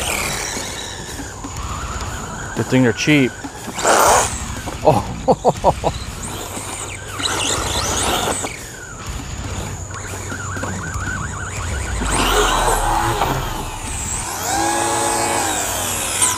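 A small electric motor whines and revs up and down.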